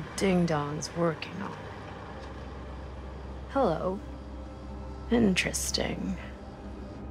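A young woman speaks in a playful, teasing voice.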